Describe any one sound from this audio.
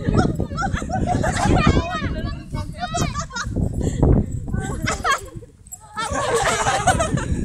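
Young people talk and shout excitedly close by.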